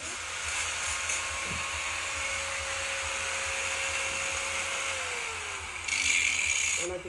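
An angle grinder whirs steadily.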